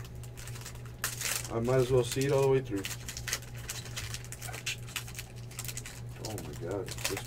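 A foil card wrapper crinkles and tears as hands open it.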